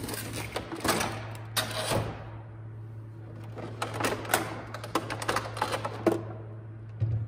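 Plastic packaging crinkles as it is pulled away.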